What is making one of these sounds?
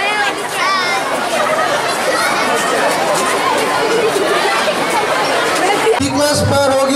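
A large crowd of children chatters outdoors.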